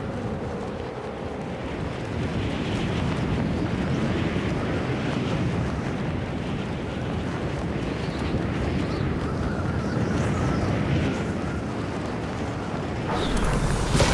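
Air rushes loudly past a diving figure in freefall.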